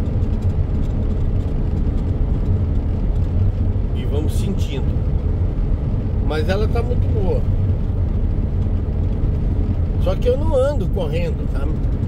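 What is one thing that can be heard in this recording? A vehicle drives steadily along a road with a low, constant rumble.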